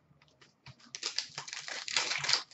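Hands crinkle the foil wrapper of a trading card pack.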